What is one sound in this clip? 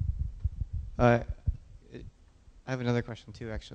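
A young man speaks through a microphone in a large echoing hall.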